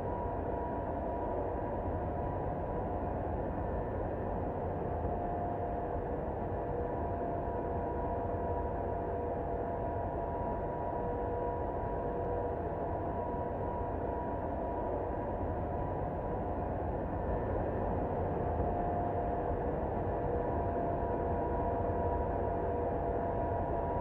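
Jet engines roar steadily, heard from inside an airliner.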